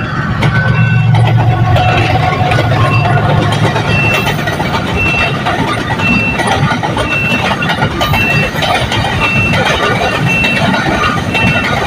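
Freight wagons rattle and clatter over the rails.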